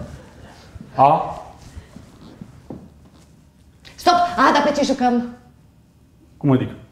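A man speaks with animation in a large room.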